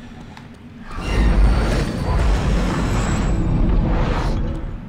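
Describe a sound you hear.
A massive stone door grinds and rumbles open.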